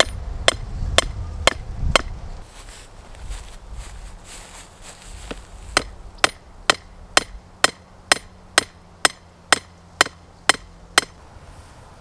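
A hammer strikes a metal stake with sharp ringing clangs.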